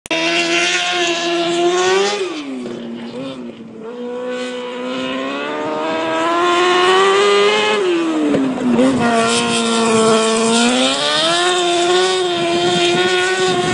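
A race car engine screams loudly, revving up and dropping again and again.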